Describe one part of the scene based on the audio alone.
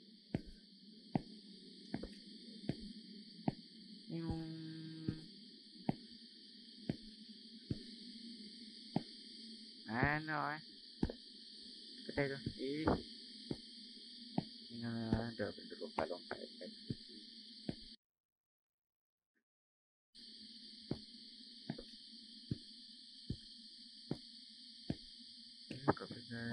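Footsteps crunch steadily on gravel outdoors.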